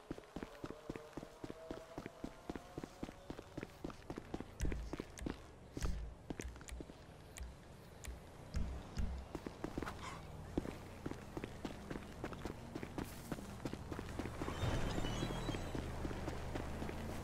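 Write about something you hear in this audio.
Footsteps walk steadily on pavement.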